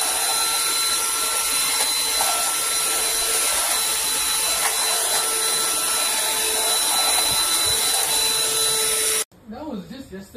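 A vacuum cleaner whirs steadily, then cuts off.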